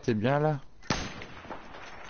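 A rifle fires a single sharp shot.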